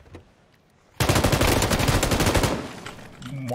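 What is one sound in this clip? A machine gun fires a long, loud burst.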